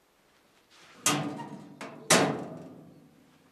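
A metal filing cabinet drawer clanks open and shut.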